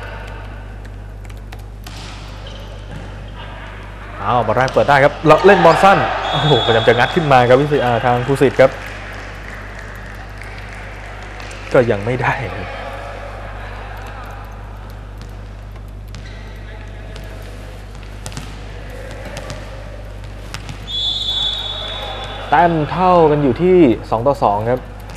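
A volleyball is bumped off a player's forearms.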